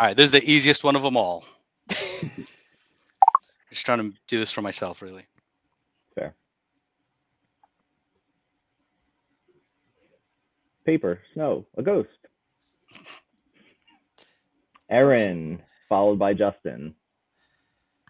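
A man talks with animation over an online call, in short bursts.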